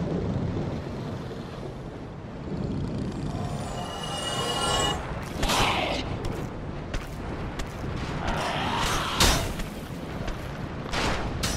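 Heavy armoured footsteps clank steadily on stone.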